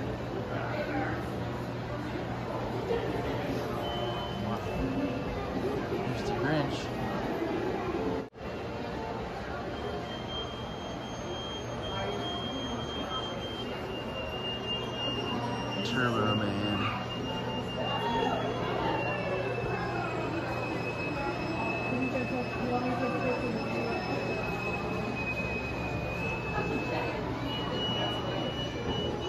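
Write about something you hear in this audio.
A crowd of people chatters around the listener.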